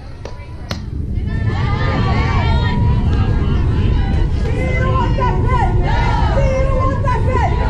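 Young girls cheer and shout excitedly outdoors.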